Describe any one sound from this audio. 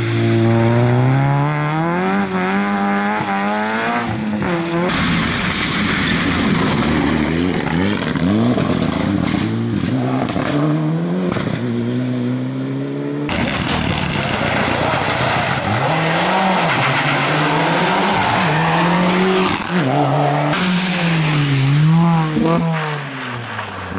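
Rally car engines roar loudly, revving up and down as they pass close by.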